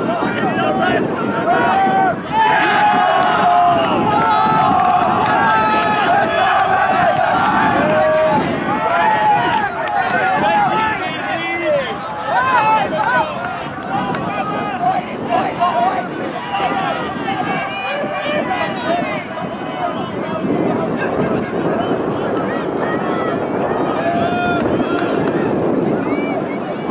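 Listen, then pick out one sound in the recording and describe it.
A crowd of men and women shouts and cheers outdoors.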